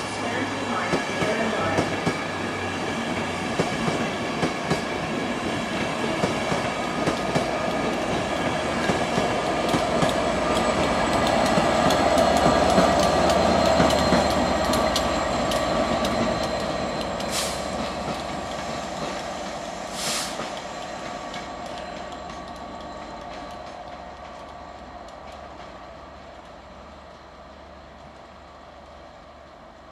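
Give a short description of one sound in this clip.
A train rumbles past on the tracks.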